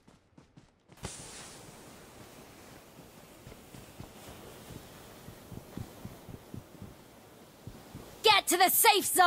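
Footsteps walk over grass and concrete.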